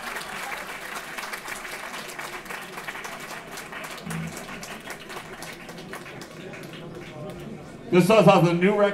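A crowd cheers and claps in a large hall.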